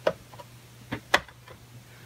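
A metal panel taps and clicks as it is pressed into place.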